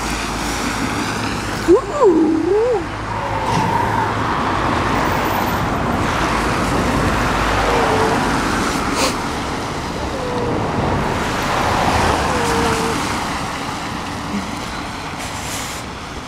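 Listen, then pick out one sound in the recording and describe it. A car engine hums as a car drives along a road.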